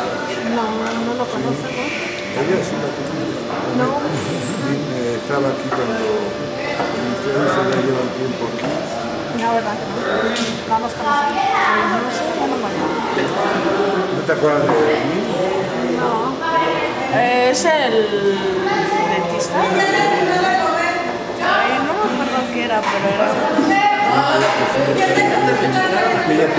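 Several boys talk and shout over one another nearby in an echoing room.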